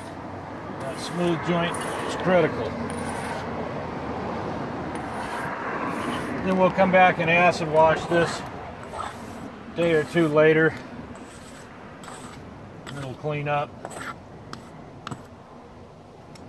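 A trowel scrapes wet mortar across brick.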